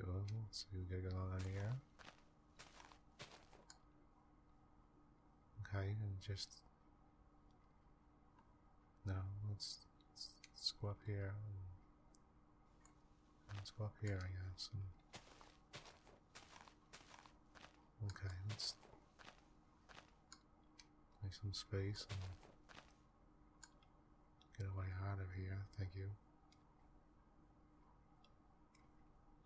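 Footsteps thud softly on grass and dirt.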